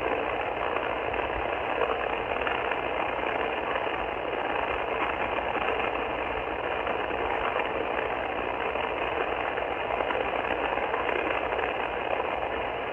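A radio receiver hisses with steady static through its small speaker.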